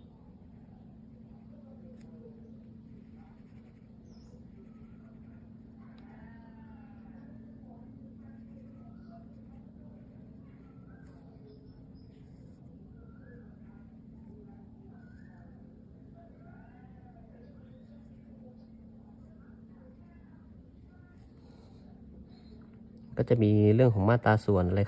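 A felt pen scratches softly across paper.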